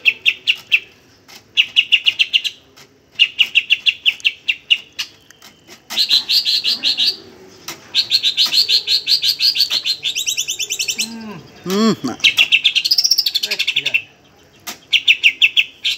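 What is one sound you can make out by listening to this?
A green leafbird sings in rapid, chattering phrases, close by.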